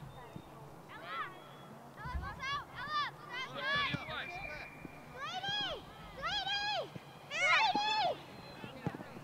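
Women and girls on the sideline shout encouragement.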